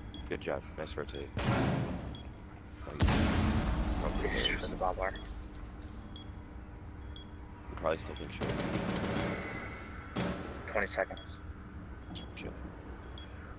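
An electronic device beeps softly at intervals.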